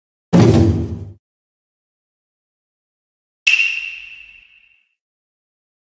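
A game's menu sound effect chimes.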